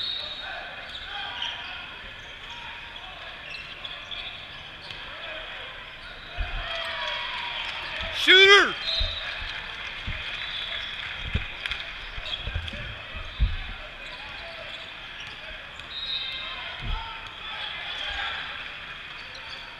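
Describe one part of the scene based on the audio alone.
A crowd of spectators chatters in the background.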